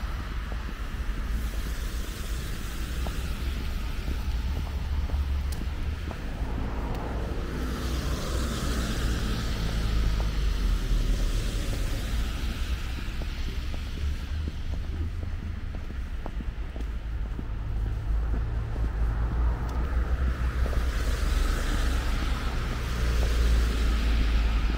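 Outdoors, low wind rumbles steadily.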